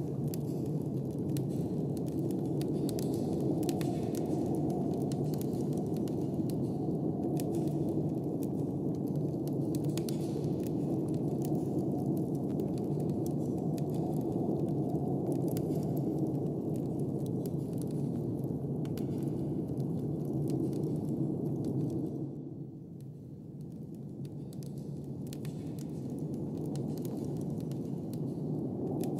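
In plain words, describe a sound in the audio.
A fire crackles and pops in a fireplace.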